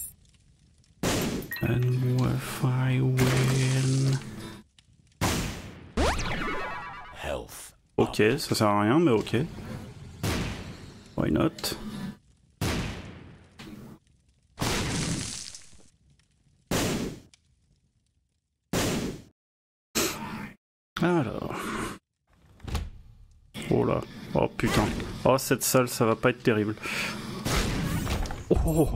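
Video game sound effects chime and pop in quick bursts.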